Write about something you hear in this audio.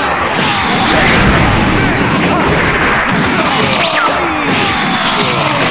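An energy blast explodes with a loud, roaring boom.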